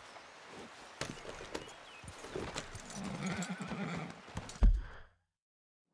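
A horse's hooves thud on the ground as it walks.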